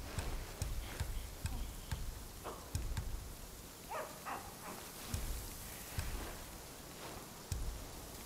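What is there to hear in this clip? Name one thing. Short soft clicks tick one after another.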